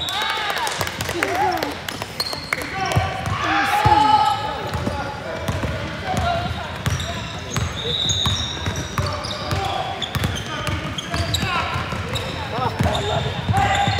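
A basketball bounces on a wooden floor with a hollow echo.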